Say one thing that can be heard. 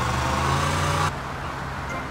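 A car engine idles and then cuts out.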